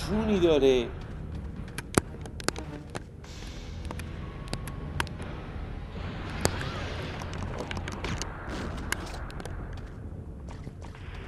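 Footsteps thud on rocky ground.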